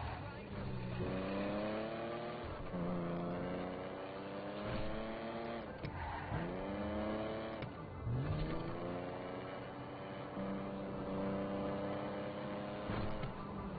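A car engine revs up and down through the gears.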